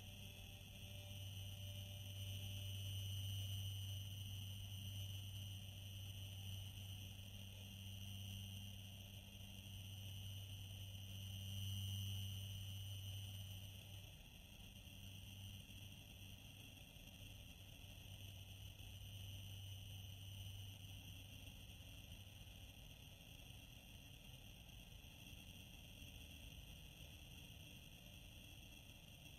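A spaceship engine drones steadily with a deep hum.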